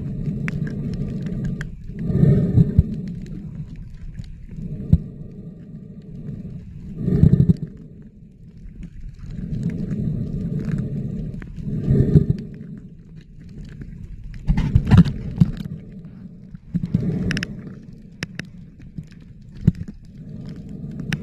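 Water churns and rumbles in muffled, wavelike surges underwater.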